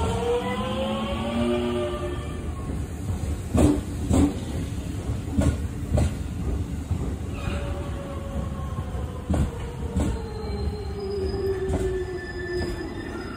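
A train rolls past close by with a low rumble.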